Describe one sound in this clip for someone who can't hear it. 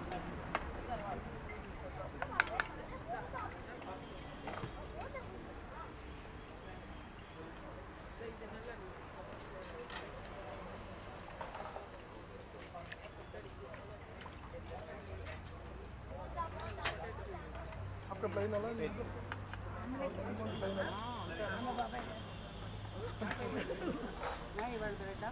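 Batter sizzles softly on a hot griddle.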